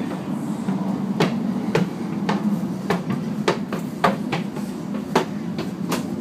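A child's footsteps thump up metal stairs.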